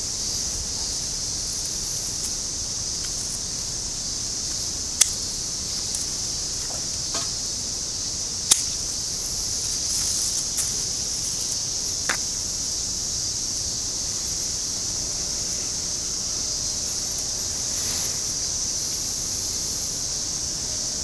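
Leaves and branches rustle as they are handled.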